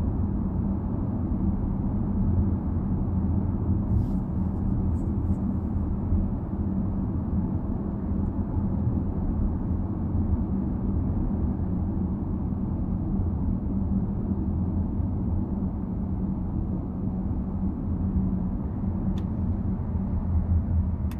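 A car engine hums steadily with tyres rumbling on the road, heard from inside.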